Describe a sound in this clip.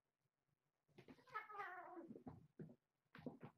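A kitten growls.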